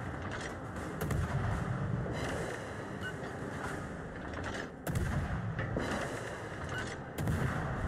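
Heavy naval guns fire with deep booms.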